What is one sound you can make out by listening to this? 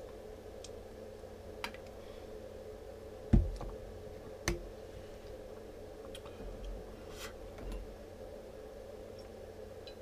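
A man gulps a drink.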